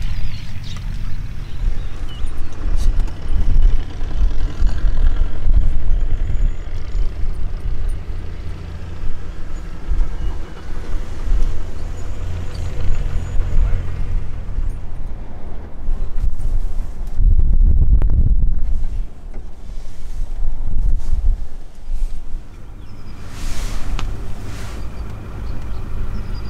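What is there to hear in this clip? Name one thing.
Wind rumbles steadily across open ground outdoors.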